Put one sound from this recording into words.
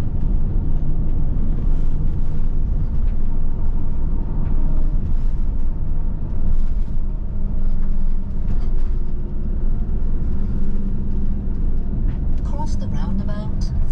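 Tyres roll on the road surface with a low rumble.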